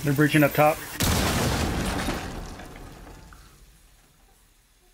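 A smoke grenade hisses loudly and slowly fades.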